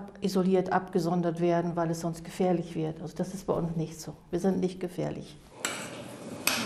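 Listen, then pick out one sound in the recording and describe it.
An elderly woman speaks calmly close to a microphone.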